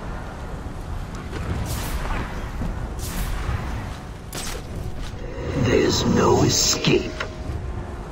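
A heavy blow lands with a loud crash and rumble.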